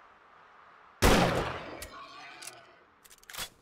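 A gun fires a single loud shot.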